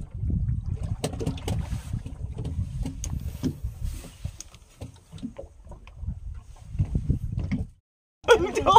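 Wind rumbles past outdoors on open water.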